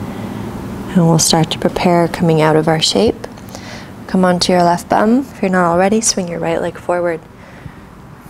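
A woman speaks calmly and close up, as if giving gentle instructions.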